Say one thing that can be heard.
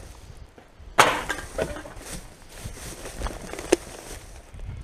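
Plastic bottles and cans clatter together inside a bag.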